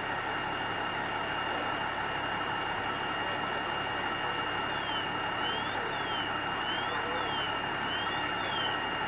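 A chainsaw engine idles steadily nearby.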